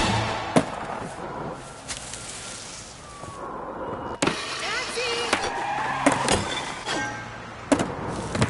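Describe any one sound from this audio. Skateboard wheels roll over pavement.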